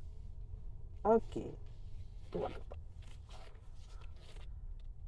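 A man speaks calmly from close by.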